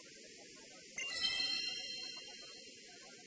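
A magical shimmering chime rings out.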